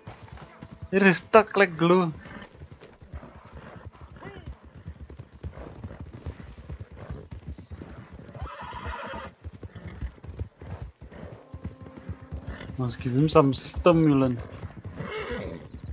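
Horse hooves pound steadily on grass at a gallop.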